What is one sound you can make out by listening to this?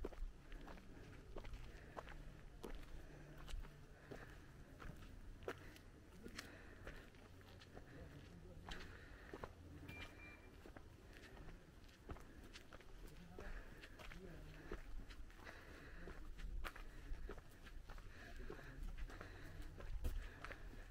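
Footsteps tap steadily on a paved lane outdoors.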